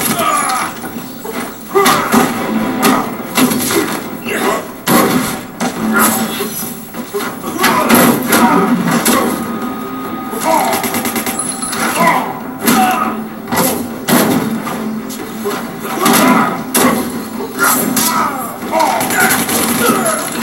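Game music plays through a television speaker.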